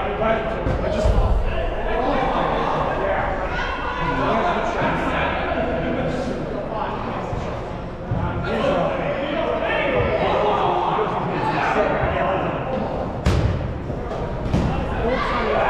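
Balls thud against the floor and bodies.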